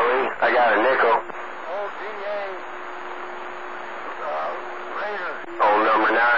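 A radio receiver hisses with static, heard through a small loudspeaker.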